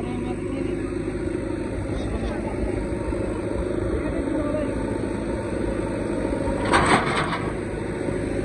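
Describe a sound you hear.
Soil and clods tumble out of a tipping trailer.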